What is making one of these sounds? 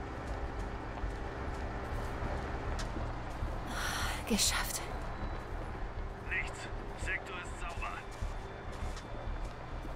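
Footsteps pad softly over grass.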